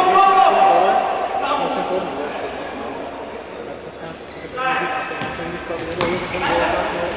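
Men shout across an echoing indoor hall.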